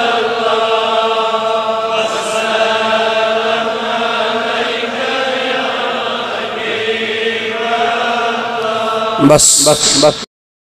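A man chants in a drawn-out, melodic voice through a microphone, with a slight echo.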